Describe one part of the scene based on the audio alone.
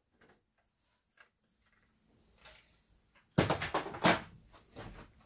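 A plastic panel clatters and knocks as it is pulled off a computer case.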